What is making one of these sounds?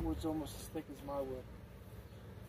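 A young man speaks loudly and briefly close by, outdoors.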